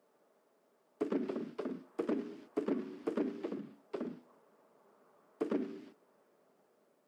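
Soft popping clicks sound as items are dropped into a box.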